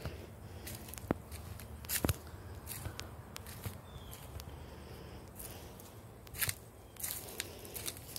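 Footsteps crunch on dry leaves outdoors.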